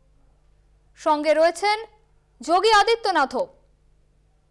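A man calls out loudly nearby in a drawn-out voice.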